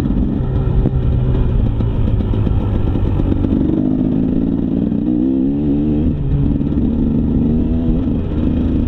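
Tyres rumble and crunch over a rough dirt trail.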